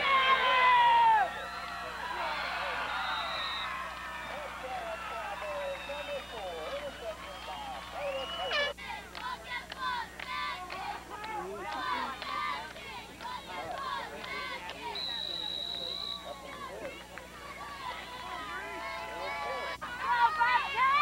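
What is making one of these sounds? Several people nearby talk and call out with excitement.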